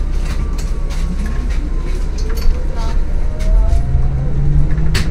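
A hybrid city bus's electric drive whines, rising in pitch as the bus pulls away.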